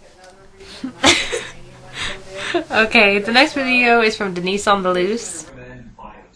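Two young women laugh.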